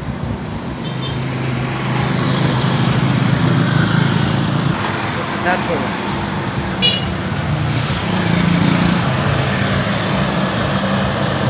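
A motorcycle engine hums as it passes on the road.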